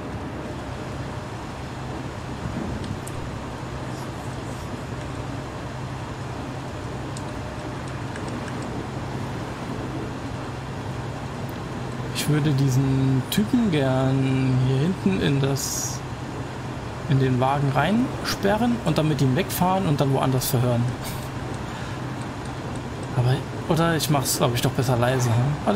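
An armored vehicle's engine rumbles steadily as it drives along a road.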